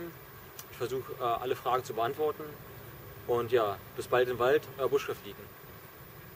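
A young man speaks calmly and close by, outdoors.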